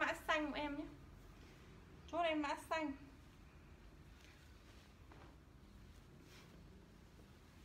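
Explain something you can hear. Clothes rustle as a young woman pulls them off and on.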